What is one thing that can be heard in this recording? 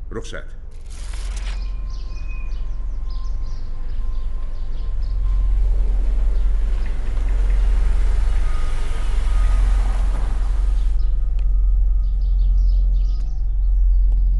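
A car engine rumbles as a car drives closer.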